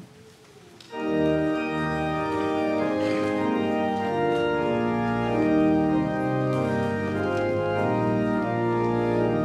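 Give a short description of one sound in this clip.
A congregation sings together in a large hall.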